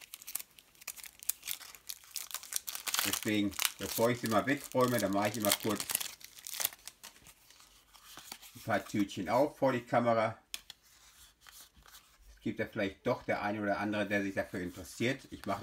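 Trading cards rustle and slide as they are handled.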